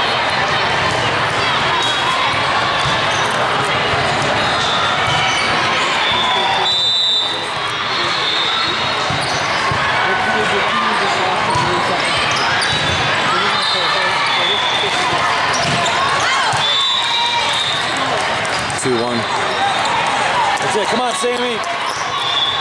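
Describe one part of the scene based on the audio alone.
Many voices murmur and chatter in a large echoing hall.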